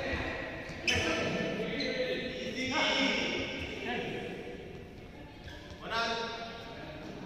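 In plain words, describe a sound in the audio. Sports shoes squeak sharply on a court floor in a large echoing hall.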